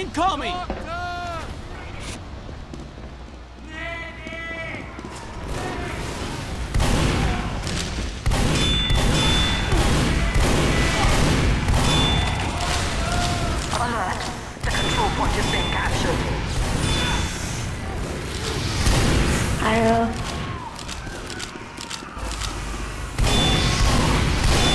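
Gunshots fire in quick bursts, loud and sharp.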